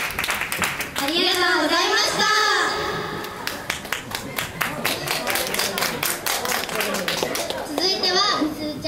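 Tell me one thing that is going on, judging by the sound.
A young girl speaks with animation through a microphone, heard over loudspeakers.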